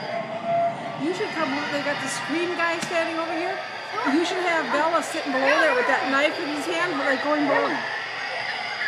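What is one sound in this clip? An eerie recorded voice moans and chants through a small loudspeaker.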